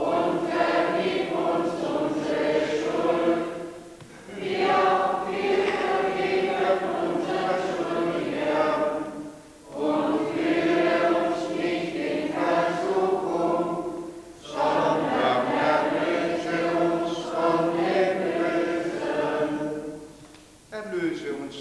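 A congregation sings a slow hymn together in a large echoing hall.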